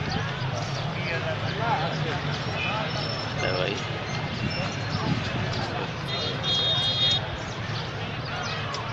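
Men chatter and call out outdoors.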